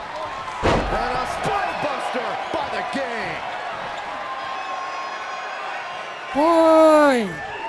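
A large crowd cheers and roars in a big arena.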